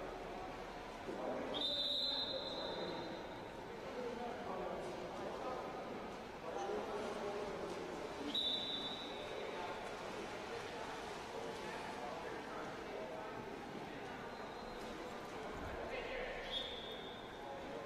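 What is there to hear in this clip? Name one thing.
Players splash and churn the water in an echoing indoor pool.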